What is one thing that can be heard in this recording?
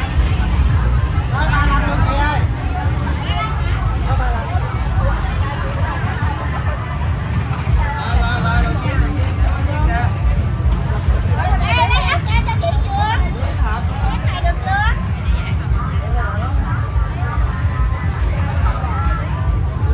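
Women and men talk nearby with animation.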